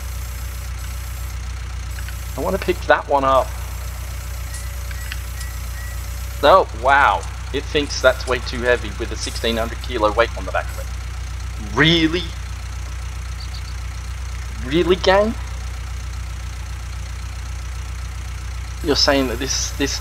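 A tractor engine idles with a steady low drone.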